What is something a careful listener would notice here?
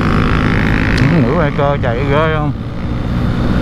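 A motorcycle engine revs up and down as it shifts gear.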